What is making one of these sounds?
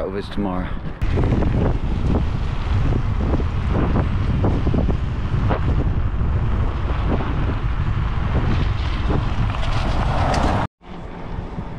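Wind roars against a microphone outdoors.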